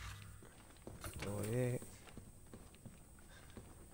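Footsteps tread across a hard floor.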